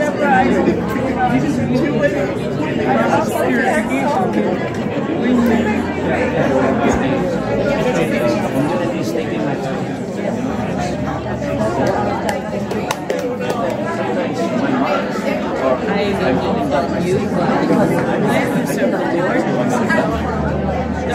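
Many adults chatter at once in a busy, echoing room.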